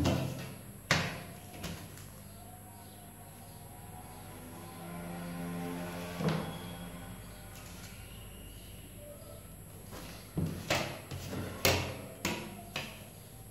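A plastic ruler knocks against a tabletop.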